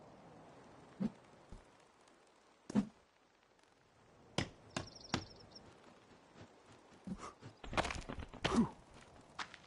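Heavy wooden logs thud and knock into place.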